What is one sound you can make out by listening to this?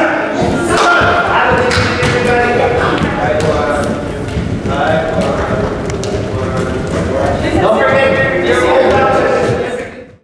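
Children chatter and shout excitedly in an echoing hall.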